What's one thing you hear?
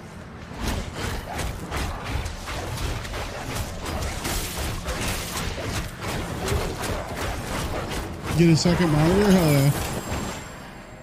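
Spell blasts and weapon hits crash rapidly in a fight.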